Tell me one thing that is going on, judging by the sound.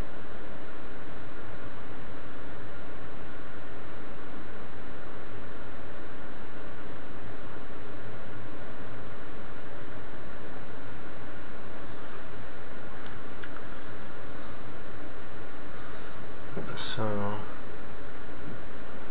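A man talks calmly into a microphone, close by.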